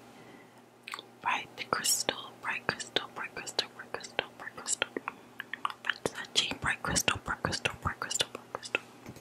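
Fingernails tap and click on a glass bottle close to a microphone.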